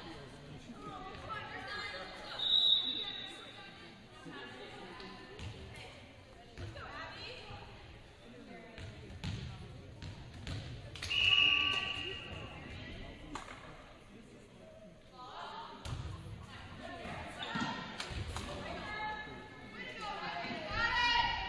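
Young women players shout calls to each other in an echoing gym.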